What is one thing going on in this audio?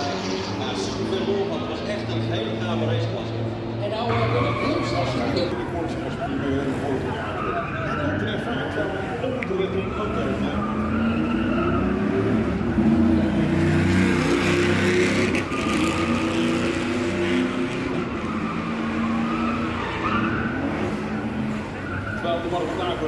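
A crowd of spectators chatters nearby.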